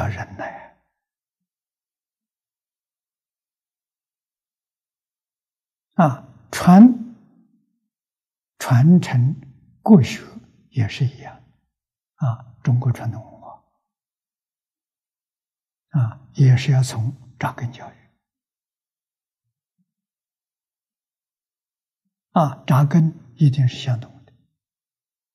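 An elderly man speaks calmly close to a microphone, in short phrases with long pauses.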